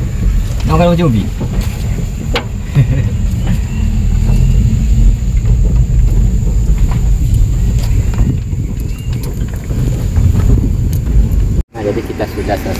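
A small van's engine runs inside the cab as it drives on a dirt track.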